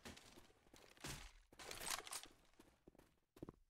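A rifle clicks and rattles as it is picked up and readied.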